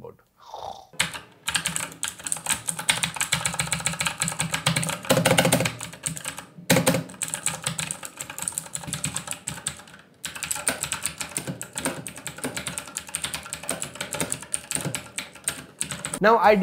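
Keys on a mechanical keyboard clatter rapidly under typing fingers.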